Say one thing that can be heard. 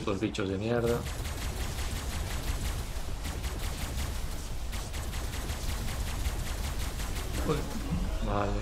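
A laser gun fires in rapid bursts.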